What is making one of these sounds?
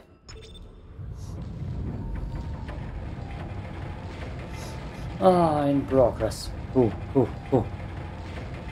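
A heavy metal shutter rumbles low and steadily as it moves.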